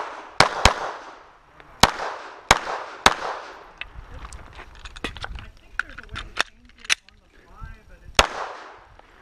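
A pistol fires sharp shots that echo outdoors.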